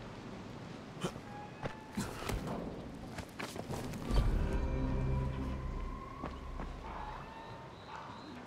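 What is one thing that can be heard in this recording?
Footsteps scrape and clatter over roof tiles.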